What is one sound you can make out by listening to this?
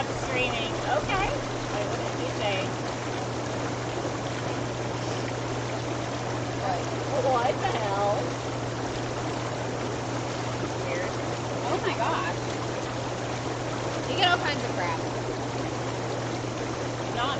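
Water bubbles and churns steadily in a hot tub.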